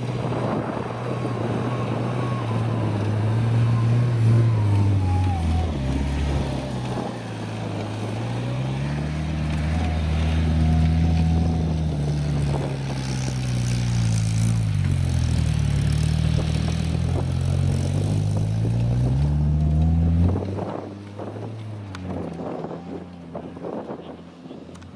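A small car engine revs hard up and down, close by, then fades into the distance.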